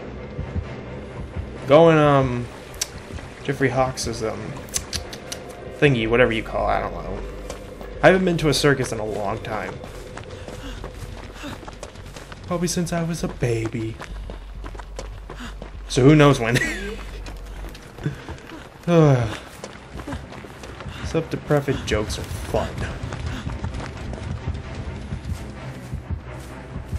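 Footsteps walk over wooden floorboards and then through grass.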